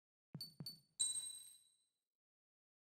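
A whooshing chime sounds as a menu opens.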